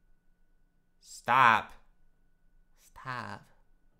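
A young man speaks in short bursts into a nearby microphone.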